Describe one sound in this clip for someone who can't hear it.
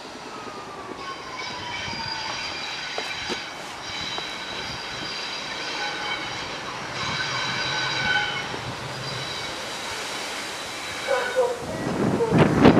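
A diesel locomotive engine rumbles and whines as it slowly approaches.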